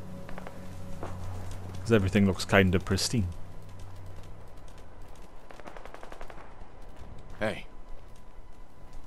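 Footsteps run quickly over hard pavement.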